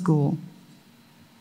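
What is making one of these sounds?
A woman speaks briefly into a microphone in an echoing hall.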